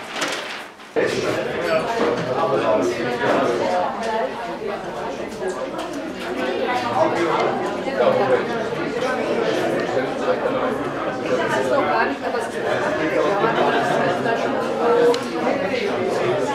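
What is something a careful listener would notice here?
Many people chatter at once in a large echoing hall.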